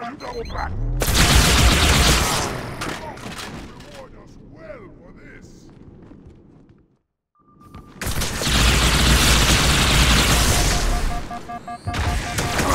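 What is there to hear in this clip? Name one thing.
Weapons fire in loud roaring blasts.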